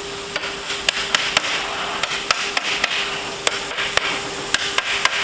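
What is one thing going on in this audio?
A hammer taps sharply on wood, again and again.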